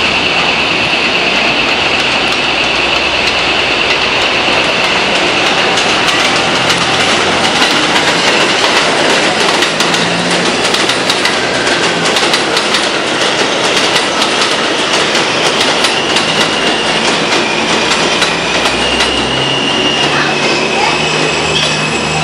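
A subway train rolls along elevated steel track.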